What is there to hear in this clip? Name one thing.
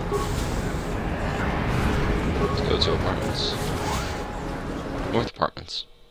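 A door slides open with a mechanical hiss.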